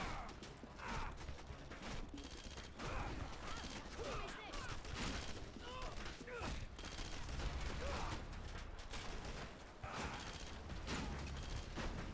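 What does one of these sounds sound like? Heavy boots thud on dirt in a steady walking rhythm.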